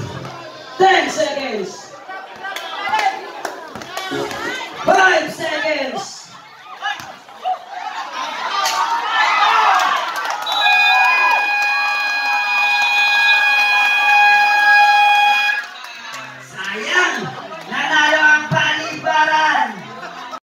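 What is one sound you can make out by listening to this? Men shout and call out excitedly close by, outdoors.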